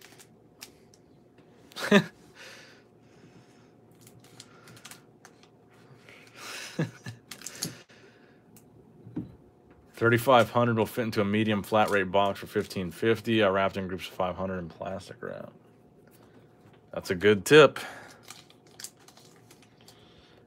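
A plastic-wrapped card pack crinkles and rustles in someone's hands.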